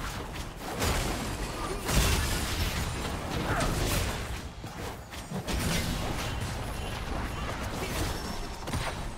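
Magic blasts and hits crackle and whoosh in a fast game fight.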